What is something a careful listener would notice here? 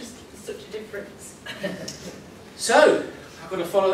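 A woman laughs with delight.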